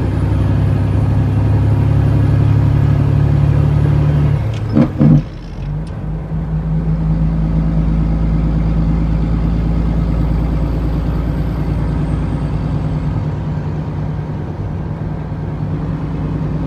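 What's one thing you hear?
A bus engine hums steadily while driving along a road.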